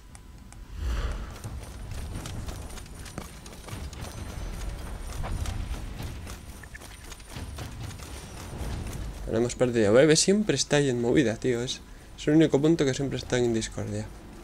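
Armoured footsteps run over stone.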